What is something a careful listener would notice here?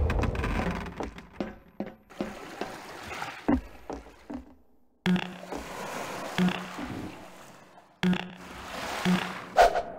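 Footsteps thud on wooden planks and metal roofing.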